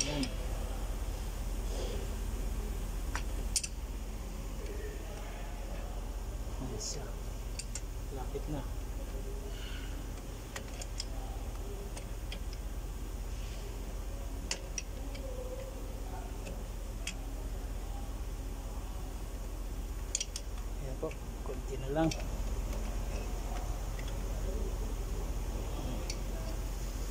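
Metal tools clink and knock against metal parts.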